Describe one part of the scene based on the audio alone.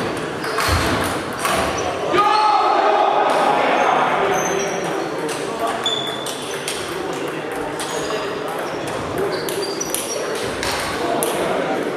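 Table tennis balls click against paddles and tables in a large echoing hall.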